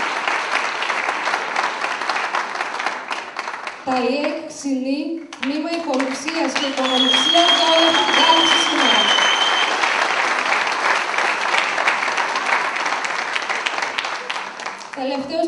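A large group claps steadily in a big echoing hall.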